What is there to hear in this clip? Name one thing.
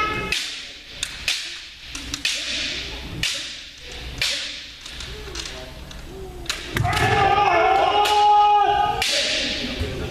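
Bamboo swords clack sharply against each other in a large echoing hall.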